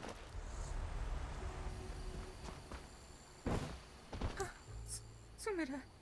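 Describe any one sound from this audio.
Footsteps tread on grass.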